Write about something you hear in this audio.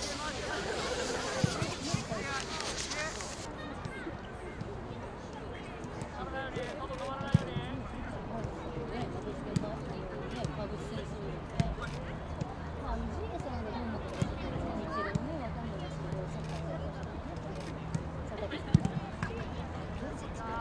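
A crowd of onlookers murmurs and chatters in the distance.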